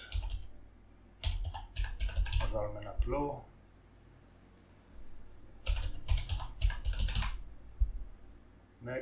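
Keys clatter as a man types on a keyboard.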